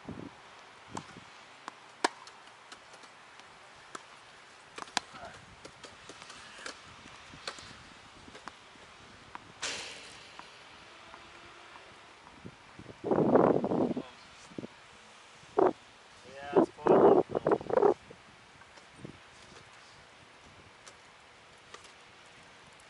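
A tennis ball is struck with sharp pops back and forth, outdoors.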